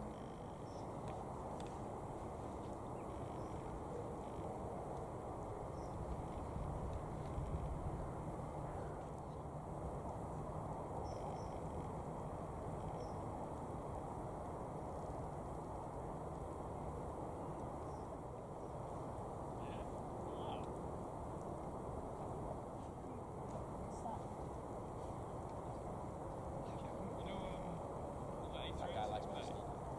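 A jet airliner's engines roar steadily as it rolls along a runway, heard from a distance.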